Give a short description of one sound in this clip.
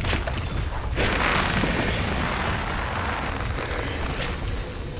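Magic blasts whoosh and burst in a spell effect.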